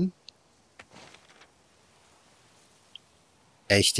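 A sheet of paper rustles in a hand.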